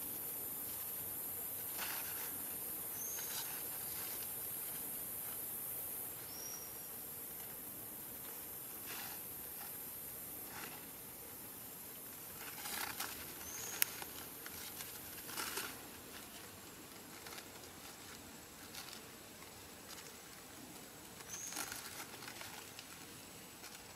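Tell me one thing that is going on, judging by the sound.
A young monkey rustles and tugs at large leaves.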